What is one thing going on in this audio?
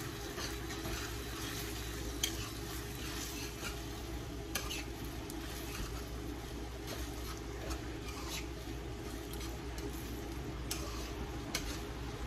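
A metal spoon scrapes and stirs in a frying pan.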